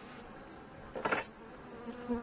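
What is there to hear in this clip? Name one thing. A metal hive tool scrapes and pries against a wooden frame.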